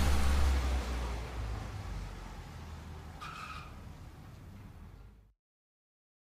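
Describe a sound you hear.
A car drives slowly past on a street.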